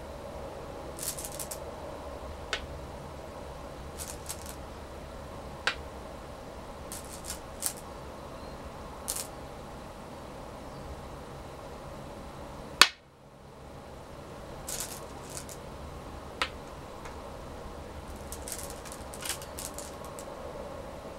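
Stones rattle together in a bowl.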